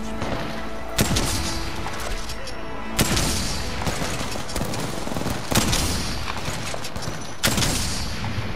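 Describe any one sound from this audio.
Gunshots ring out with loud, sharp bangs.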